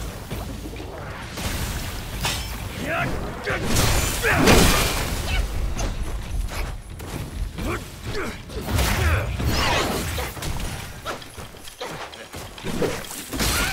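Heavy blows thud.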